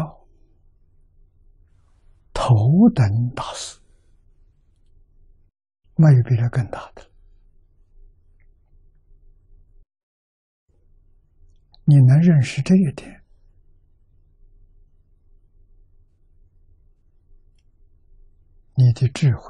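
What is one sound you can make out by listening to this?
An elderly man speaks slowly and with emphasis into a microphone, in short bursts with long pauses.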